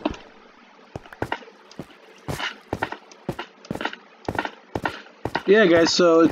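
Footsteps tread on stone at a steady pace.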